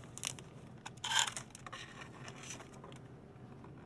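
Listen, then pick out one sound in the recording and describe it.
A plastic package crinkles as it is handled.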